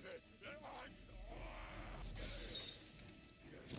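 Glass shatters and crashes.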